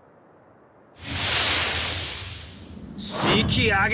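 A loud rushing whoosh swells and fades.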